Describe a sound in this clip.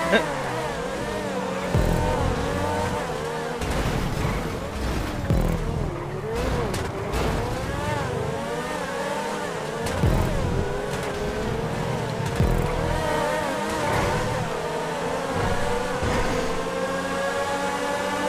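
A racing car engine roars at high revs, its pitch rising and falling with the gear changes.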